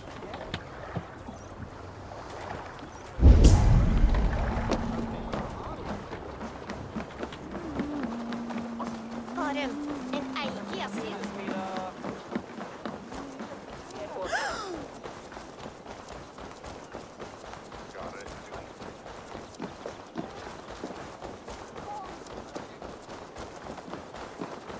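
Footsteps thud quickly on wooden planks and dirt as someone runs.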